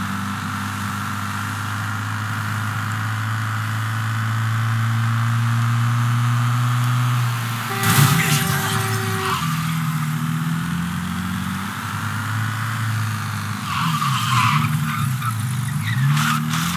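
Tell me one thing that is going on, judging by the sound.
A car engine hums steadily and revs as it drives.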